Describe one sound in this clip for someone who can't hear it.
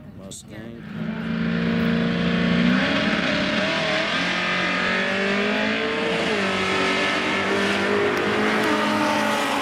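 A turbocharged Nissan 350Z revs at the start line.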